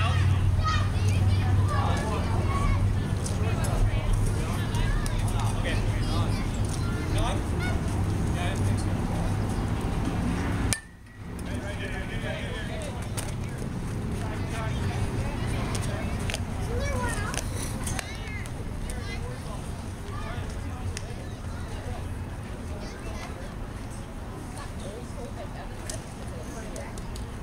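Young players call out in the distance outdoors.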